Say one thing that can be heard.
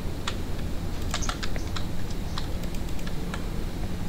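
A wooden door clicks open.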